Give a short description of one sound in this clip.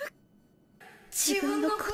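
A young woman speaks softly and weakly.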